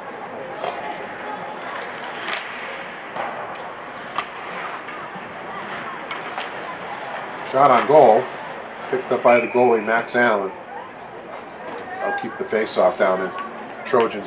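Ice skates scrape across the ice.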